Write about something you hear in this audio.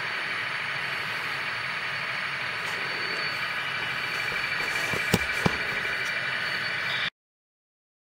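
A model train rumbles and whirs steadily along its track.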